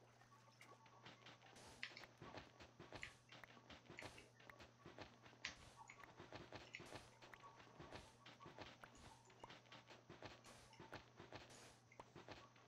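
Blocks of sand and dirt crunch repeatedly as they are dug away.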